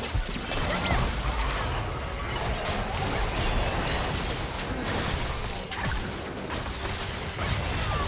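Magic spells crackle and burst rapidly during a game fight.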